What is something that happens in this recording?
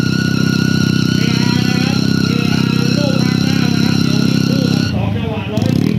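A motorcycle engine idles loudly.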